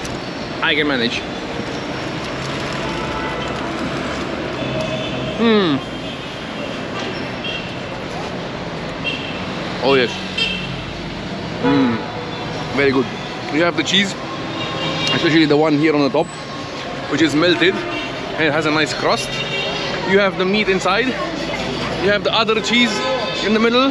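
Street traffic hums steadily outdoors.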